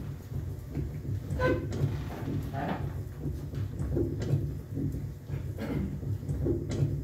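A low, throbbing electronic drone plays through a loudspeaker.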